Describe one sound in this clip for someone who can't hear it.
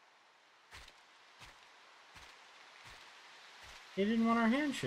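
Footsteps tread steadily through tall grass.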